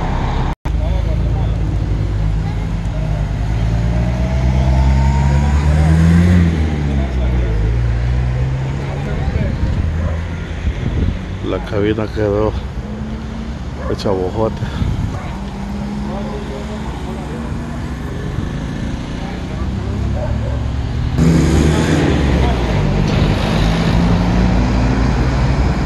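Vehicle engines rumble as traffic passes on a nearby road.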